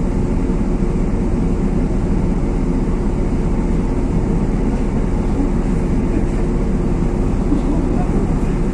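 A car engine hums steadily at low speed close by.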